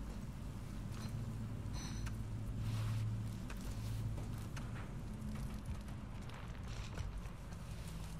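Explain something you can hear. Footsteps clang on metal grating and stairs.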